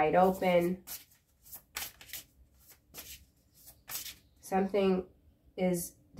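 A woman speaks calmly and closely, in short phrases with pauses.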